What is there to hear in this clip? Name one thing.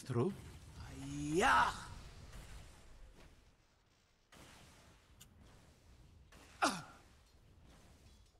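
Magic spells crackle and whoosh during a fight.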